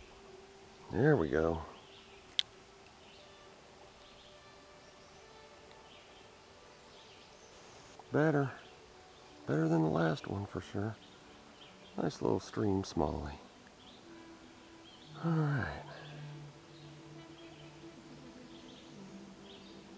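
A stream trickles gently nearby.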